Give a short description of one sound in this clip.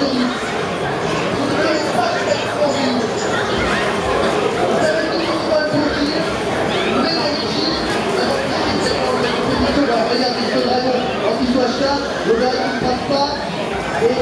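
Video game music plays through loudspeakers.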